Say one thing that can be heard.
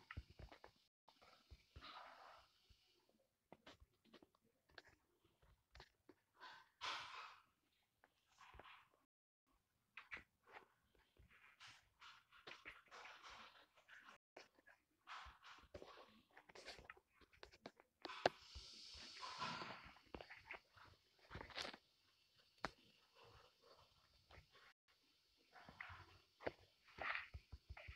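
Footsteps crunch on grass.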